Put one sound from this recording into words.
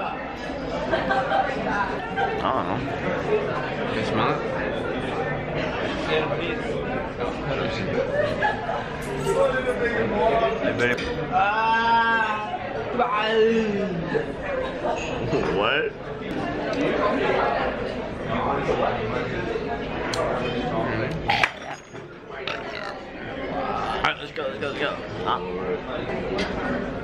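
Other young men chat and laugh nearby.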